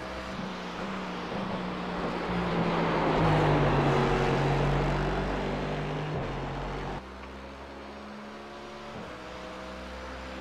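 A racing car engine roars loudly, rising and falling in pitch as the car shifts gears.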